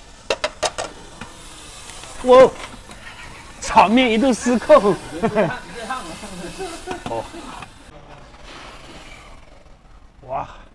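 Steam hisses loudly.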